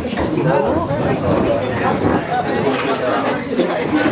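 A crowd of men and women chatter and laugh.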